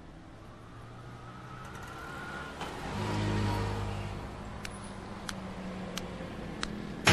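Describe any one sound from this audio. A vehicle engine idles with a low hum.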